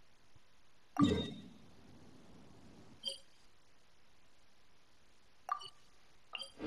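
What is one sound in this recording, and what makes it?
Short electronic chimes sound as a menu is clicked through.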